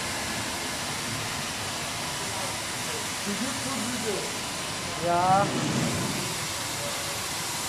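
A floor-cleaning machine hums steadily as it rolls over a hard floor.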